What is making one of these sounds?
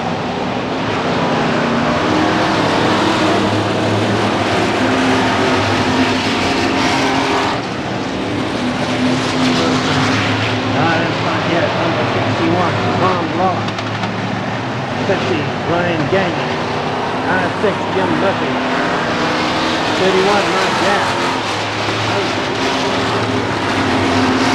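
Race car engines roar loudly around a track, outdoors.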